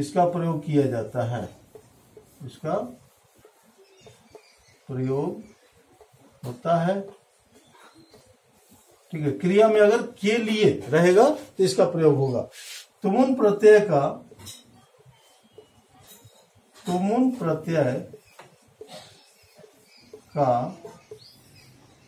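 A middle-aged man speaks calmly and clearly, in short phrases with pauses, close by.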